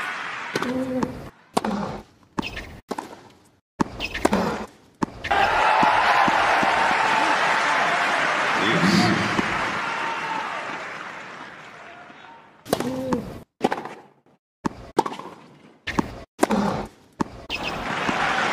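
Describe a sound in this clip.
A tennis ball is struck sharply with a racket, back and forth.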